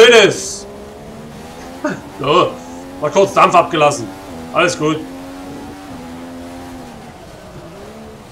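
A racing car engine drones at high revs, its pitch dropping and rising with gear changes.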